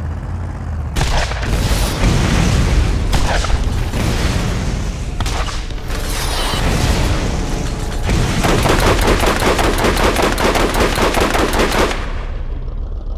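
A mounted gun fires rapid bursts.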